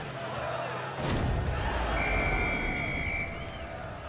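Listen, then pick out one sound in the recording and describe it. A loud explosion booms with a roar.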